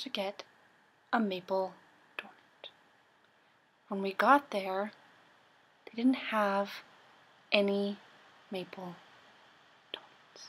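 A young woman sings in short phrases close to a microphone.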